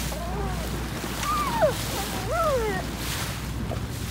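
A dolphin splashes as it breaks the surface.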